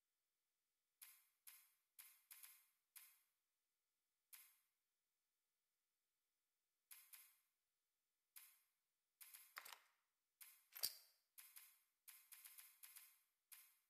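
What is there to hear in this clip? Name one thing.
Soft menu ticks sound in quick bursts as settings are scrolled.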